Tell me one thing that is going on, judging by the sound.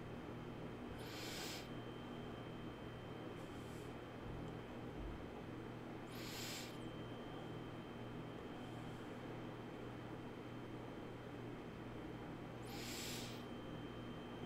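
A man breathes slowly and deeply close to a microphone.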